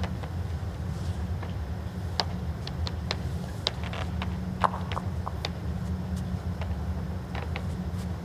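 A heavy ball rolls quietly across a carpet.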